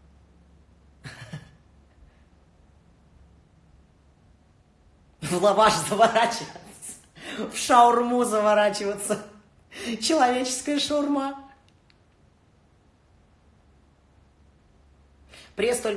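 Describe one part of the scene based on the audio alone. A young man talks animatedly and close up.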